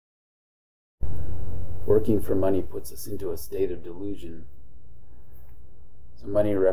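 A middle-aged man talks calmly to the listener.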